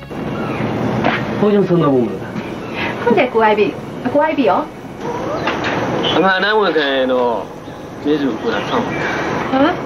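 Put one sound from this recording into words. A man speaks in a low, earnest voice, close by.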